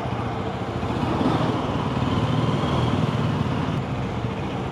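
A motorcycle engine revs up briefly.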